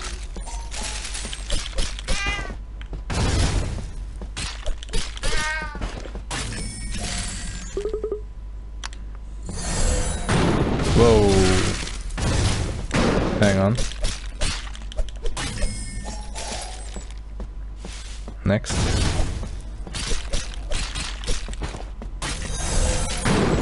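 Swords clash and strike in quick, repeated hits.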